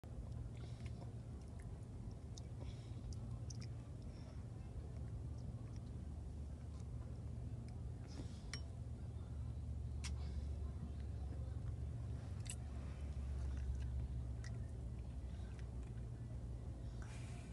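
Chopsticks click against a bowl.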